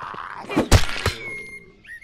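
A melee weapon strikes a character with a wet thud.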